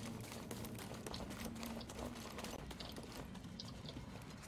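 Footsteps run over grass and dirt.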